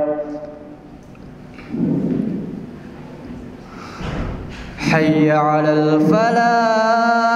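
A young man chants in a long, sustained melodic call through a microphone, echoing in a large hall.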